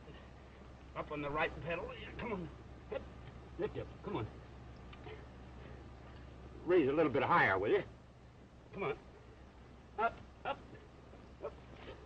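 A man talks with encouragement, close by, through an old, muffled recording.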